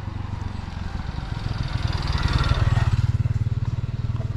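A motorbike approaches and passes close by.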